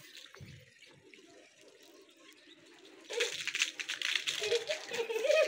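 Young children shout and squeal as they play outdoors.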